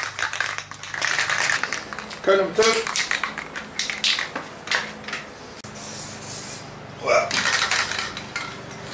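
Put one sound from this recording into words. A spray can hisses as paint is sprayed.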